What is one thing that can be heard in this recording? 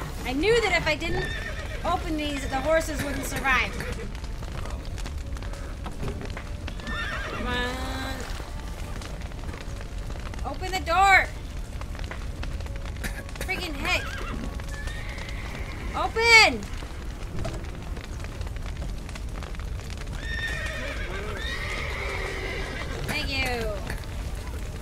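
Horses whinny loudly in distress.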